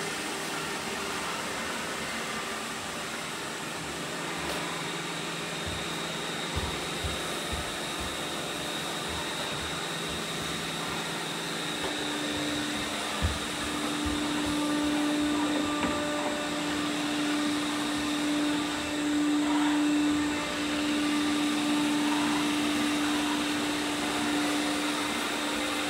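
A robot vacuum cleaner hums and whirs steadily as it moves across the floor.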